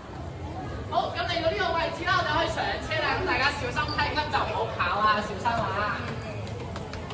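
A young man talks with animation into a handheld microphone, heard through a loudspeaker in an echoing hall.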